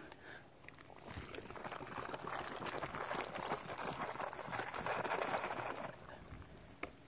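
Hair brushes and rustles right against the microphone.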